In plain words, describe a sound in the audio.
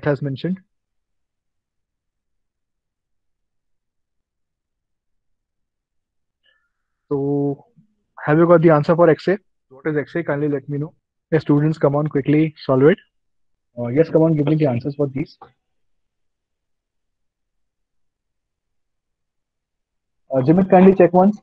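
A young man speaks calmly through a microphone on an online call.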